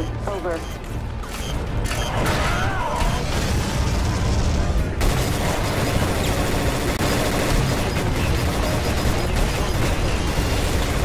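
A heavy tank engine rumbles and its treads clank.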